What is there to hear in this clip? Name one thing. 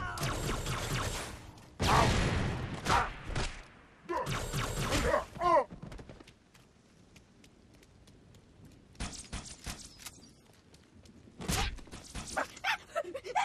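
Gunfire and blasts crackle in bursts.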